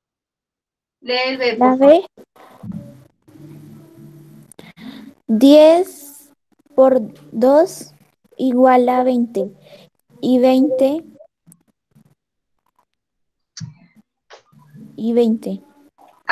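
A girl speaks calmly over an online call.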